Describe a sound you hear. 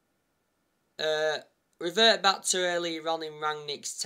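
A young man speaks close up, casually.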